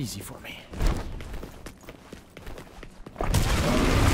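Footsteps thud quickly on stone.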